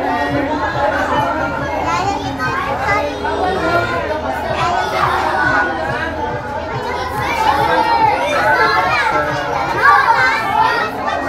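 Young children chatter and call out excitedly close by.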